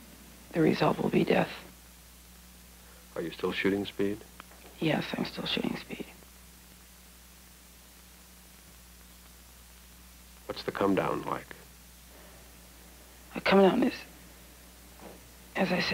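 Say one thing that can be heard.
A young woman speaks calmly and close by, in short phrases with pauses.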